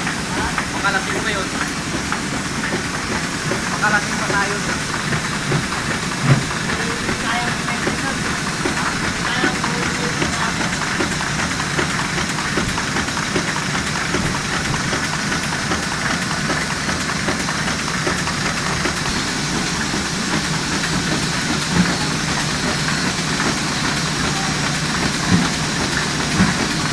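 Printing machines run with a loud, steady clatter and whir.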